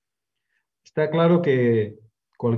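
A man speaks briefly over an online call microphone.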